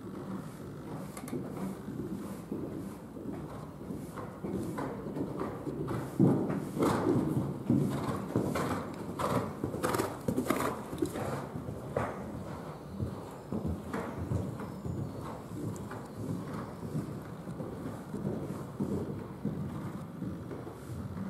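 A horse's hooves thud rhythmically on soft sand.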